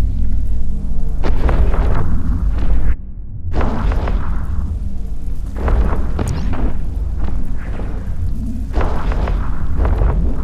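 Laser weapons fire in repeated bursts.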